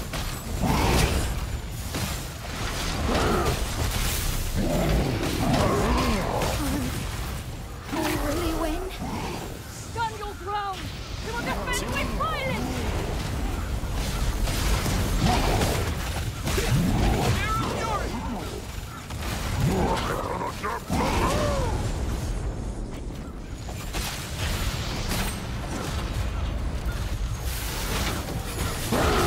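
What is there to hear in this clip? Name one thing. Heavy blows thud and weapons clash in a fight.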